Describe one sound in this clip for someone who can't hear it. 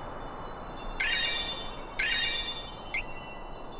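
A bright chime rings out twice as new abilities are gained.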